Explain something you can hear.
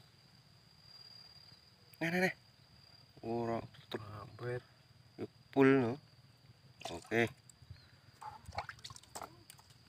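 A plastic bottle cap is twisted and clicks.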